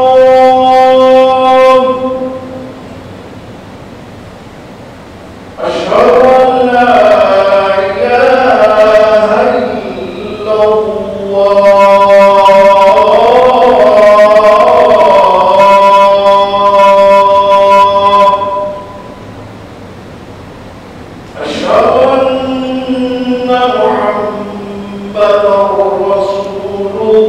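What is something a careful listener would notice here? A man chants in long, drawn-out phrases through a loudspeaker in a large echoing hall.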